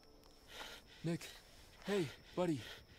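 A young man speaks urgently in short calls.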